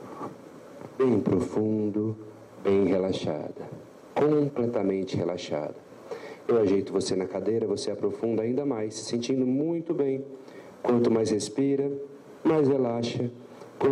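A man speaks calmly into a microphone, heard through a loudspeaker in a large room.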